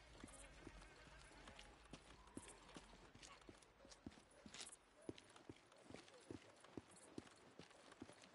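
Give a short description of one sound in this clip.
Footsteps crunch slowly over gravel and debris.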